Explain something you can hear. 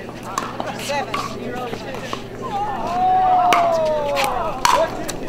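A paddle pops sharply against a plastic ball.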